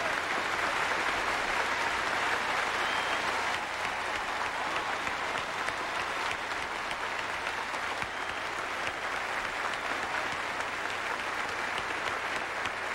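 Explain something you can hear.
A large audience cheers and applauds loudly.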